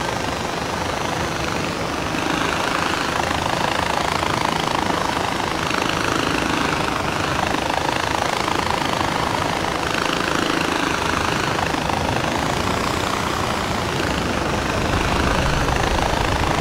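A pulley whirs steadily along a cable.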